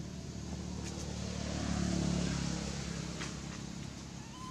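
Dry leaves rustle as a monkey walks over them.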